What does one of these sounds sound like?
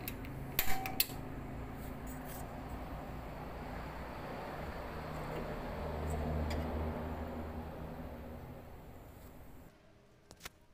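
A gas burner flame hisses and roars softly.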